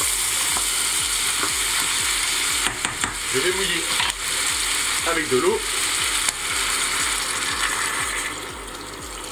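Food sizzles loudly in a hot pot.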